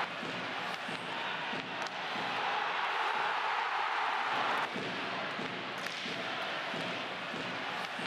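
A crowd cheers loudly in a large arena, swelling and then easing off.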